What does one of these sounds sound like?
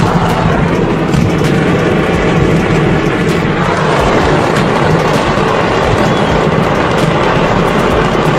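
Fireworks crackle and bang rapidly without pause.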